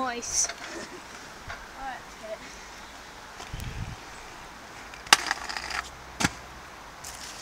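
Scooter wheels roll and clack on a paved path outdoors.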